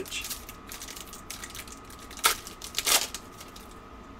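A plastic wrapper crinkles and tears as hands open it.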